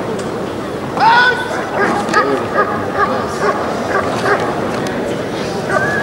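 A dog barks sharply, again and again.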